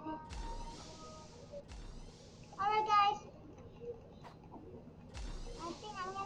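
A young girl speaks close to a microphone.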